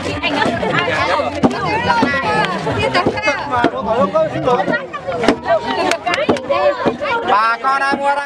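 A wooden paddle thumps on sticky dough.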